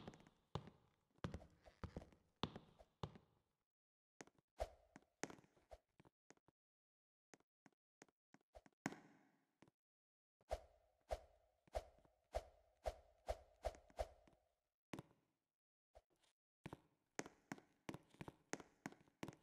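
Short game sound effects click and pop as a character jumps from ledge to ledge.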